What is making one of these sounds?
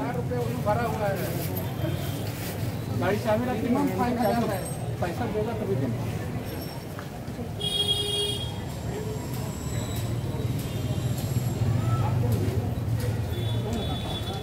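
Motorcycle engines hum in street traffic.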